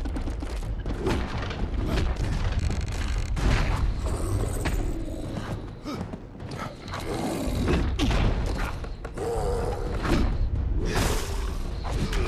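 A large creature roars and growls.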